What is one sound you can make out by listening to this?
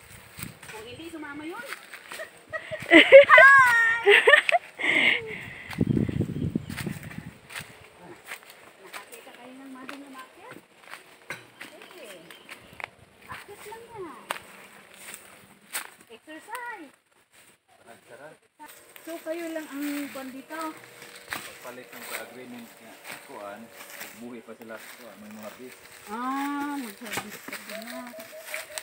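Footsteps crunch and rustle through dry leaves and undergrowth.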